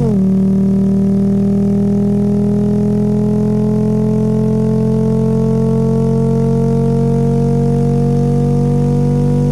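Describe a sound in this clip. An engine hums steadily, its pitch slowly rising.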